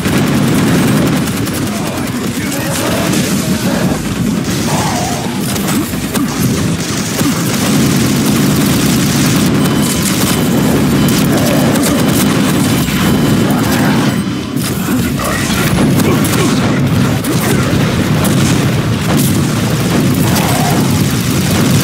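Guns fire in rapid bursts.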